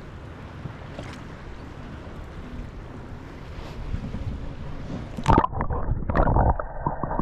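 Water laps and splashes close by outdoors.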